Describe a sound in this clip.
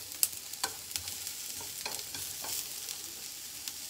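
Chopsticks click and scrape against a frying pan.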